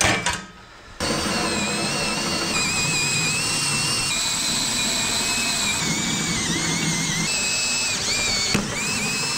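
A cordless drill whirs steadily as a hole saw cuts through wood.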